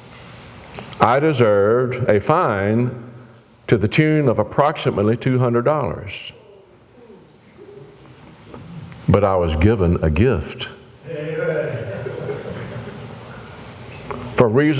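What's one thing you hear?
An elderly man speaks steadily through a microphone, pausing between phrases.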